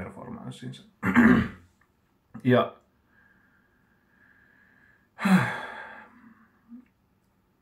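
A middle-aged man coughs into his hand.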